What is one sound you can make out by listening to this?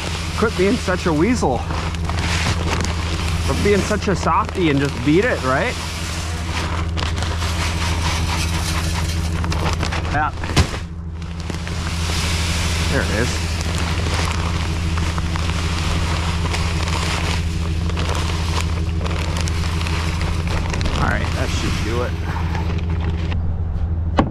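Ice melt pellets pour and rattle onto a metal grate.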